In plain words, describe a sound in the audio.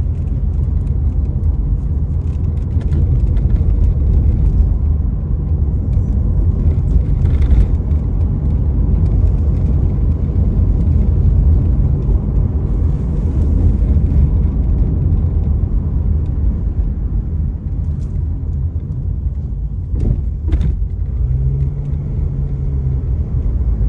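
A car drives along a road with a low, steady rumble.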